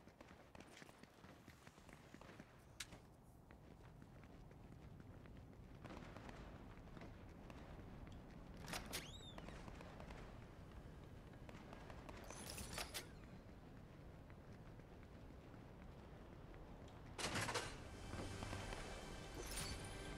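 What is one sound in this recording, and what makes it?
Footsteps run quickly across the ground.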